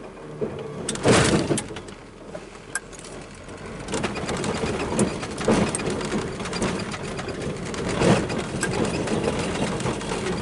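Tyres roll and splash through wet slush on a rough track.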